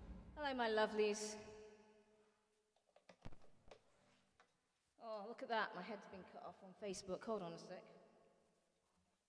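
A woman speaks with animation close to a microphone.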